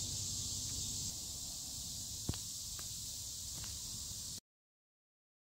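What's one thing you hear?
A river flows gently past a pebbly bank.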